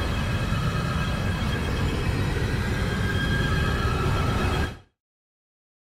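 A spacecraft roars loudly as it rushes through space.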